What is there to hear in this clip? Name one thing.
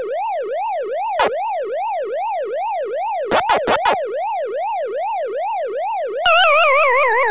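An arcade game's siren wails up and down in a steady, fast rhythm.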